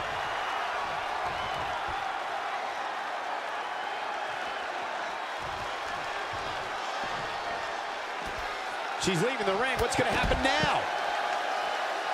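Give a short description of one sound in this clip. A crowd cheers steadily in a large echoing hall.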